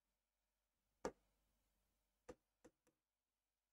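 A pen taps against a board.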